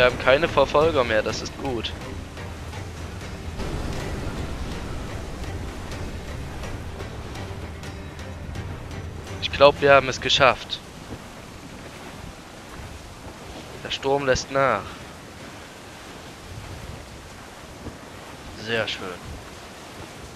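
Strong wind roars over the open sea.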